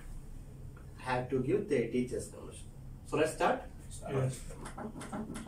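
A man speaks nearby, calmly explaining.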